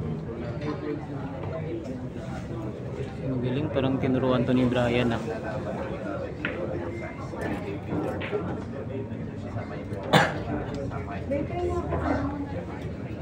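A crowd of young men chatters throughout in a large room.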